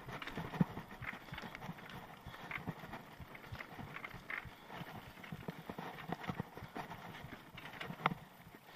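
A bicycle frame rattles and clanks on bumps.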